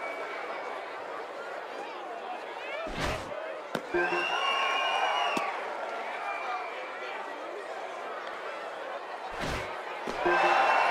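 A crowd murmurs and cheers in a stadium.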